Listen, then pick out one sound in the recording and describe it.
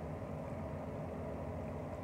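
A fork scrapes against a bowl.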